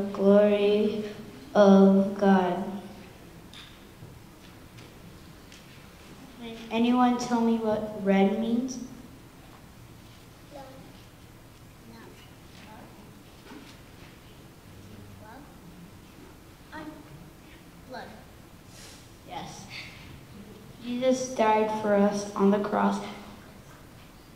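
A woman speaks clearly and warmly to a group of children, close by.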